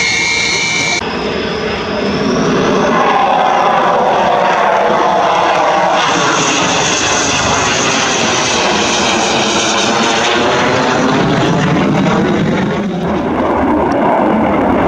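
A single-engine jet fighter roars past overhead.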